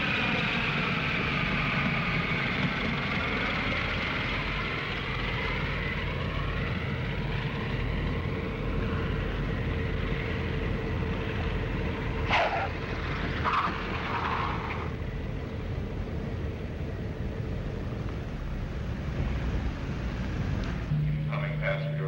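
Aircraft engines roar loudly, with a high whine that slowly falls in pitch.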